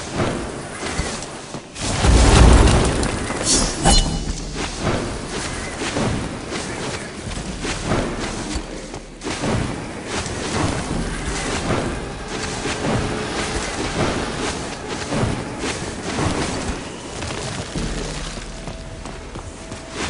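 Sword slashes whoosh and clang again and again in a fast fight.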